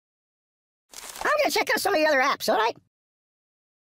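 Cartoonish game sound effects thump and clatter.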